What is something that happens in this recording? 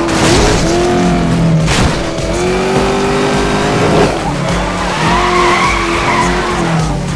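A race car engine roars at high revs, with the pitch rising and falling through gear changes.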